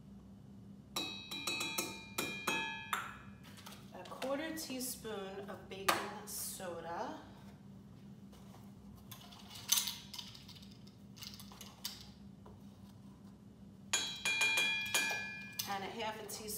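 Utensils clink against glassware.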